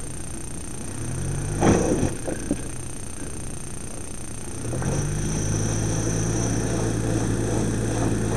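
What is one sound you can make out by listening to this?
An off-road vehicle's engine revs as it climbs over rocks.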